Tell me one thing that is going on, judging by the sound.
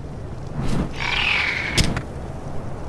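A flying reptile lets out a short, shrill screech.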